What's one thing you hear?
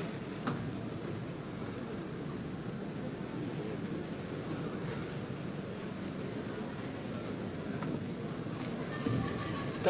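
A piano plays softly in a large, echoing hall.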